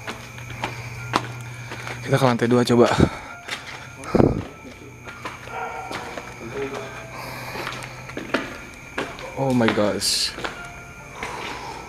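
Footsteps scuff and thud on concrete stairs.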